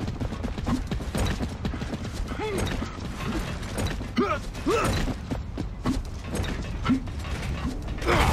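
Heavy boots thud quickly on hard ground.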